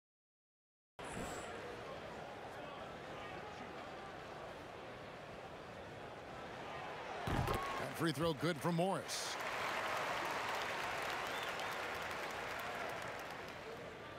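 An arena crowd murmurs steadily.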